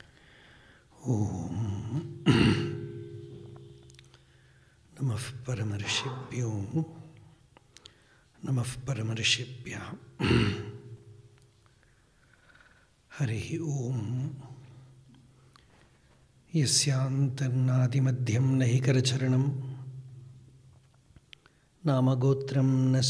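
A man speaks calmly through a microphone, in bursts with pauses.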